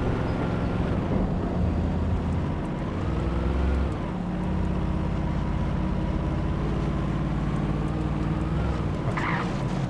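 Tyres crunch over a rough dirt track.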